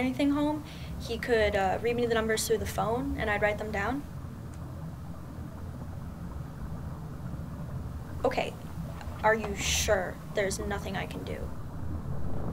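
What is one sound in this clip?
A young woman speaks quietly into a phone, close by.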